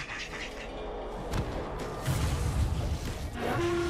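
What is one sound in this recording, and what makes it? Game spells crackle and burst in a fight.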